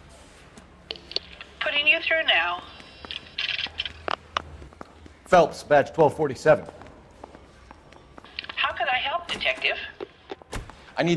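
A woman's voice answers through a telephone earpiece.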